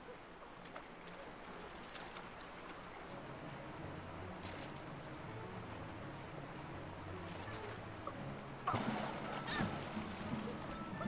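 Water rushes and roars steadily.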